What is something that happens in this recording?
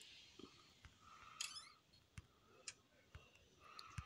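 A cupboard door creaks open.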